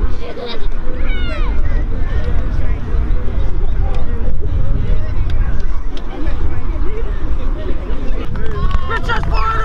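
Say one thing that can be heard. A crowd of young people talks in a low murmur.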